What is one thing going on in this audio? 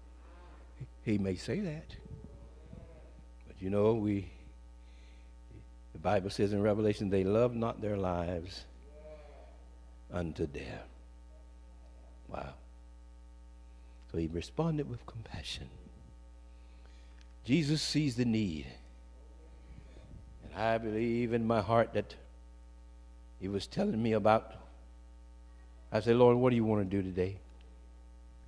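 A man preaches with feeling into a microphone, in short bursts with pauses.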